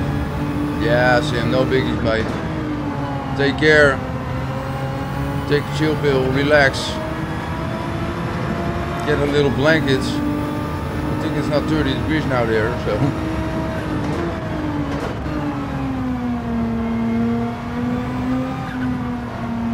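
A racing car engine drones steadily and shifts pitch as it speeds up and slows down.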